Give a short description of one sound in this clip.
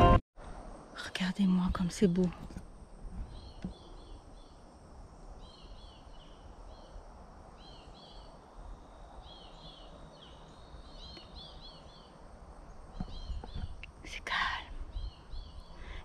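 A young woman speaks briefly, close to the microphone.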